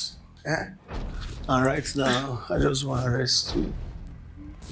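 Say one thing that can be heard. A woman speaks softly and emotionally, close by.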